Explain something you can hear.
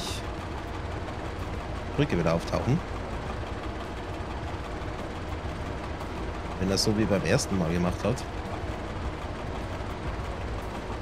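Train wheels clatter and rumble on rails.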